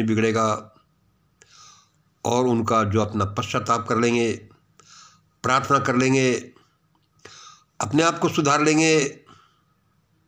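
An elderly man speaks calmly and close up, in short phrases with pauses.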